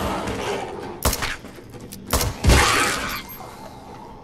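Gunshots bang loudly in a small echoing room.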